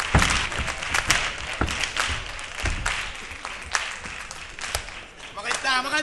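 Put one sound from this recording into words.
An audience claps and cheers in a large hall.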